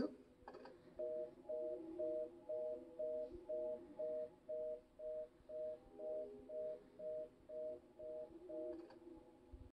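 A telephone busy signal beeps in a steady, even rhythm through a handset.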